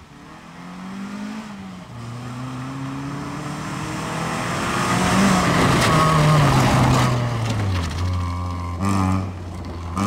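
A small car engine revs hard and shifts gears as it speeds past.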